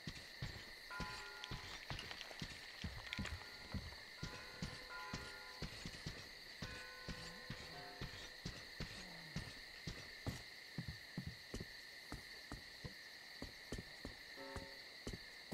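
Footsteps thud steadily on wooden planks and then on soft ground.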